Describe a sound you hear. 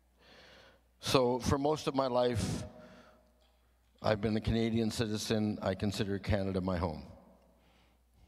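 An older man speaks calmly into a microphone, heard through a loudspeaker in an echoing room.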